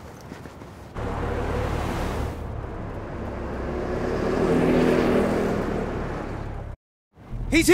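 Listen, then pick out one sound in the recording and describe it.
A car engine hums and revs up, then eases off.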